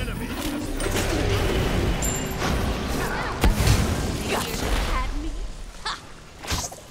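Game sound effects of spells and blasts crackle and whoosh.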